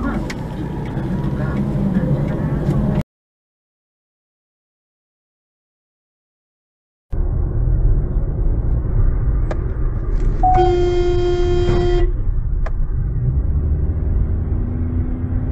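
A car engine hums and tyres rumble on the road.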